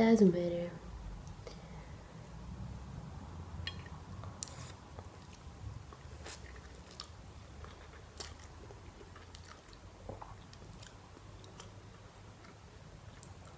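A young woman chews and smacks softly.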